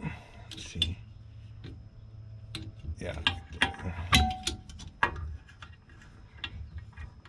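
Metal tools click and clink against a car's underside.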